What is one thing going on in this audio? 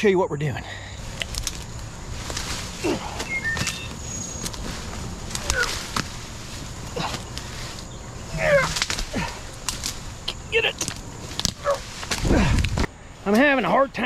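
Leafy branches rustle and snap as a man pushes through brush.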